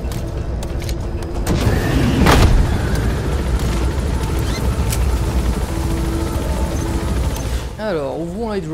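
A helicopter's rotor and engine drone loudly and steadily.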